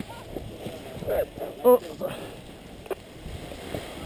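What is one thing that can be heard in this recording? A paraglider canopy flaps and rustles in the wind.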